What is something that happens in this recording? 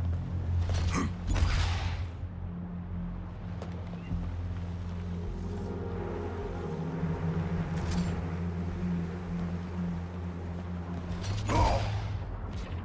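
A jet thruster fires with a short rushing whoosh.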